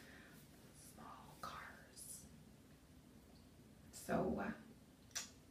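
A woman speaks with animation close by, in a small echoing room.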